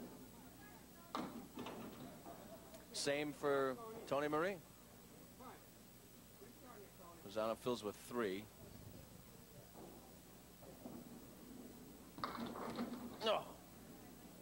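Bowling pins crash and clatter as a ball strikes them.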